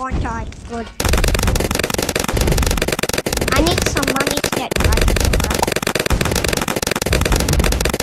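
Game balloons pop in quick succession.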